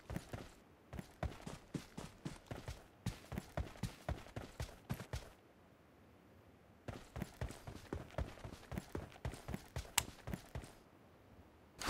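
Quick footsteps patter over grass and dirt.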